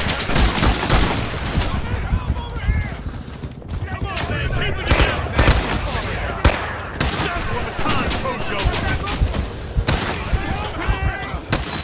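A machine gun fires in rapid, rattling bursts.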